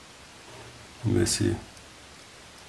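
Small metal parts click softly as they are screwed together by hand.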